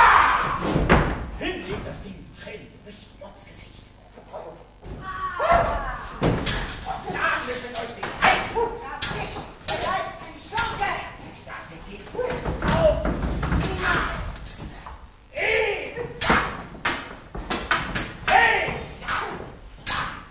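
Sharp thumps and bangs ring out.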